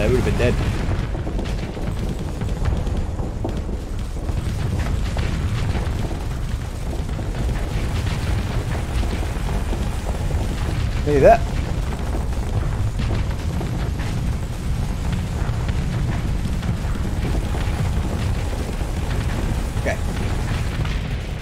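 A low engine rumble drones steadily.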